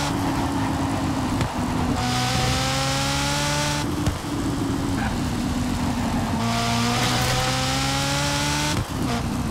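A racing car engine roars at full throttle, climbing in pitch and dropping briefly at each gear change.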